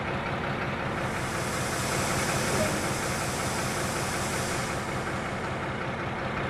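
Compressed air hisses loudly as a train brake releases.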